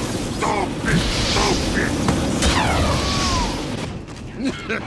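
Flames roar and crackle close by.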